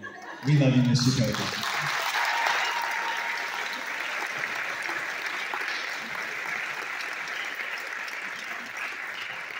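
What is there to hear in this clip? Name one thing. Hands clap in steady applause in a large hall.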